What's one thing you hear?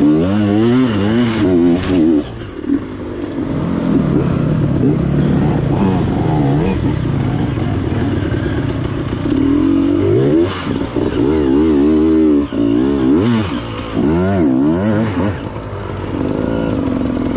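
A dirt bike engine revs loudly up close, rising and falling.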